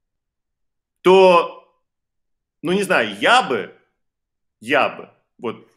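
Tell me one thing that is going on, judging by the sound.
A man speaks in short phrases through an online call.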